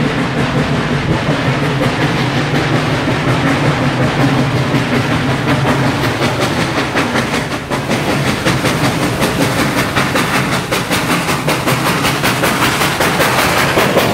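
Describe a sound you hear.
Steel wheels clatter on the rails.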